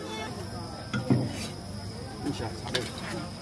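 Metal bowls clink against each other and against clay jars.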